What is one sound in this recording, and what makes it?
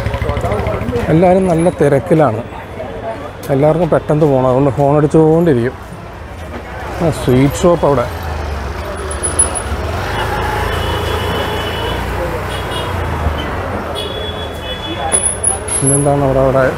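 A busy crowd murmurs in the street.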